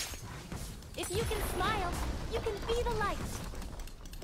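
A young woman talks animatedly into a close microphone.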